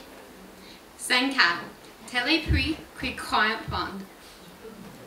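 A young woman speaks into a microphone in a large hall.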